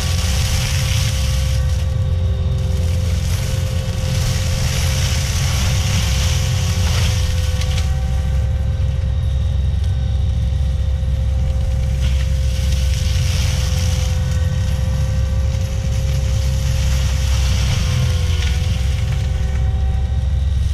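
A heavy diesel engine roars steadily close by.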